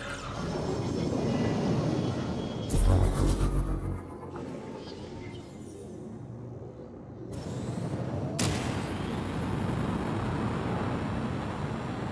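A spacecraft engine roars steadily.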